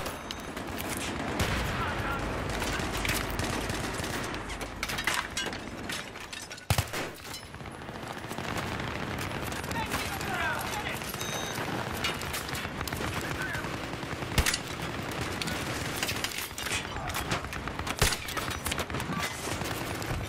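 Gunfire crackles and booms in rapid bursts nearby.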